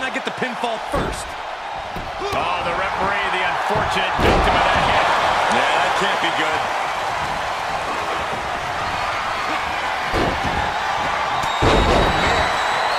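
Heavy thuds of bodies slamming onto a wrestling ring mat.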